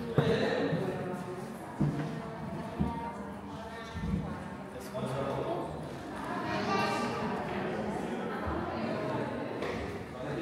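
Footsteps shuffle on a stone floor.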